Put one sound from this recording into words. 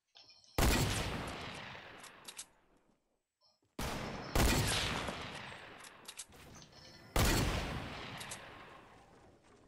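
A gun fires loud, booming shots that ring out and slowly fade.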